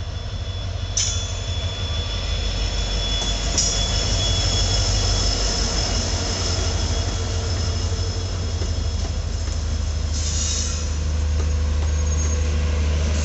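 Train wheels clatter and squeal on the rails as carriages pass close by.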